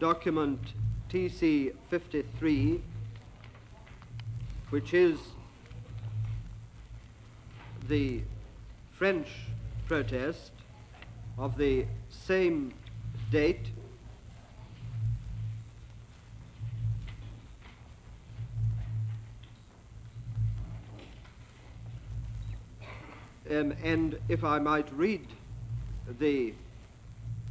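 A middle-aged man speaks calmly.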